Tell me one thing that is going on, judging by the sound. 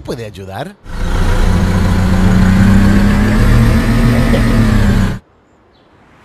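A monster truck engine revs loudly.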